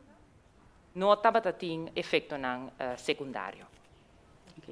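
A woman speaks louder, close to a microphone.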